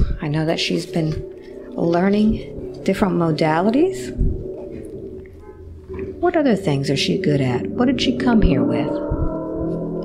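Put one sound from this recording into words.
A woman speaks softly and close to a microphone.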